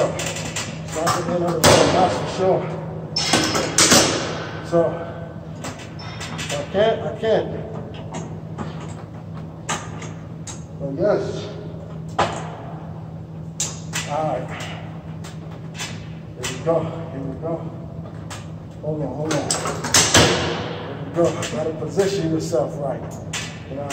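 A weight machine clanks and creaks with each repetition.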